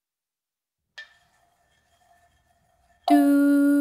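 A metal cowbell is struck with a stick and rings out brightly.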